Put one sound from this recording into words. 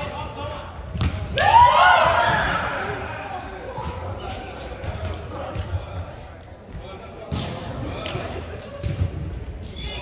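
A volleyball is struck with sharp smacks in a large echoing hall.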